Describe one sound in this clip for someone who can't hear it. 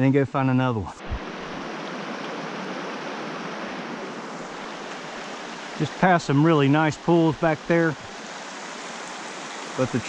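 A stream rushes and babbles over rocks.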